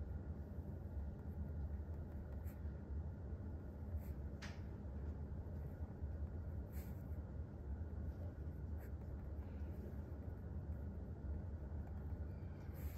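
A pen scratches softly across paper as someone writes.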